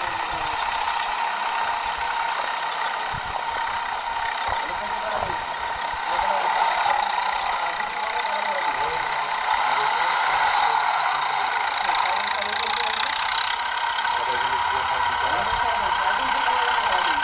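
A tractor engine hums steadily in the distance.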